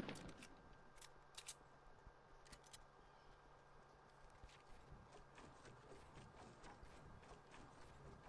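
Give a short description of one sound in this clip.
Wooden panels snap into place with sharp knocks.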